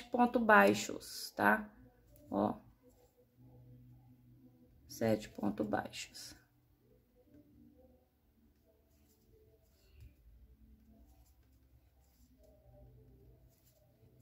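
Yarn rustles softly as a crochet hook pulls loops through it.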